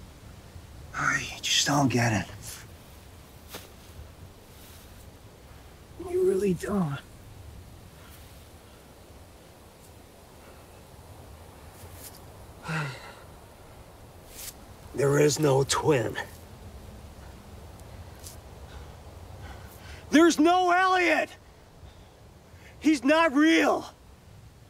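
A man groans and gasps in pain nearby.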